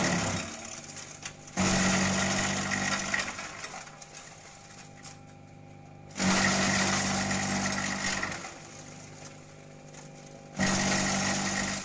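A shredder loudly grinds leafy branches in repeated bursts.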